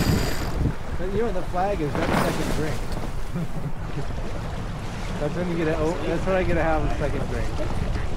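People talk nearby, heard over the wind.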